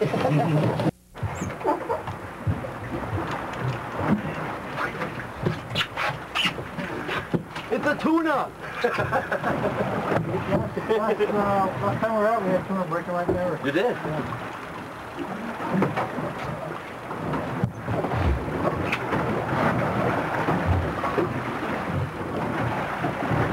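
Wind blows over open water.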